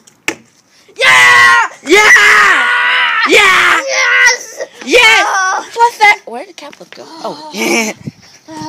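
A boy shouts and cheers excitedly close by.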